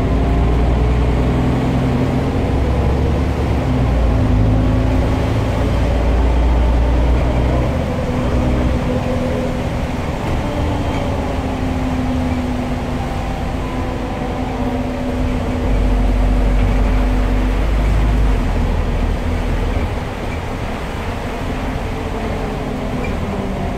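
A bus interior rattles and creaks as it moves.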